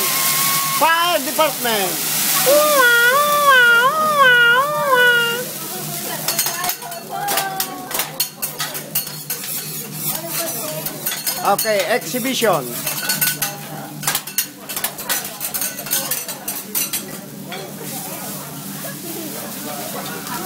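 Food sizzles on a hot griddle.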